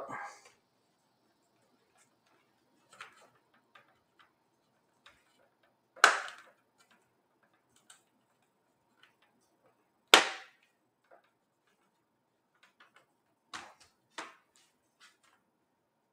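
Plastic snaps and clicks loudly as hands press a laptop into a case.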